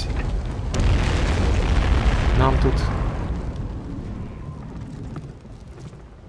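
A large fire roars with a deep rumble, then slowly fades.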